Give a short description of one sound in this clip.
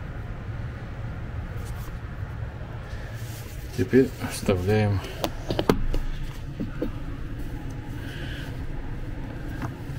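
Wooden furniture panels knock and click as they are fitted together by hand.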